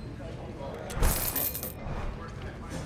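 A stack of paper money rustles as it is picked up.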